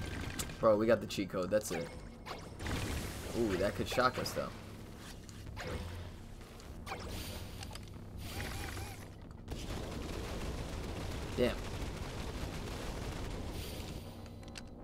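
Game gunfire and blasts crackle and pop.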